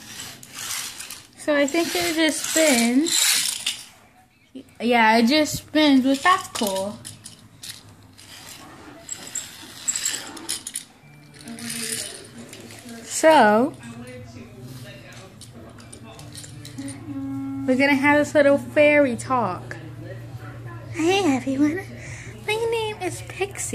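A small plastic toy rattles and clicks as it is handled.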